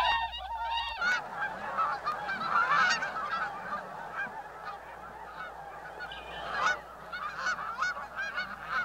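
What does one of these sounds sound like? Many wings flap as ducks take off from water.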